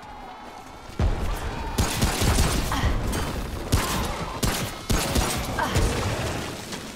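Gunshots fire in quick, loud bursts.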